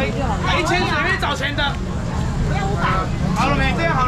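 A young man calls out loudly to the crowd.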